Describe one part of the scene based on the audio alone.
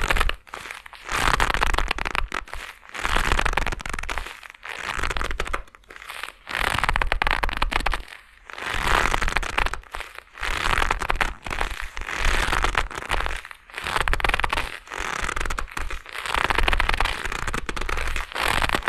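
Gloved hands rustle and rub in bursts close by.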